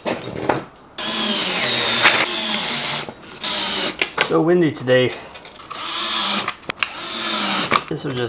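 A cordless drill whirs as it drives screws into wood.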